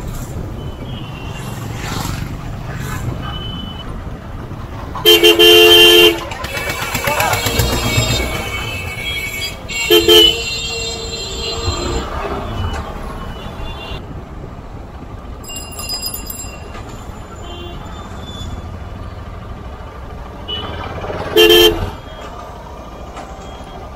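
A motor engine rumbles steadily.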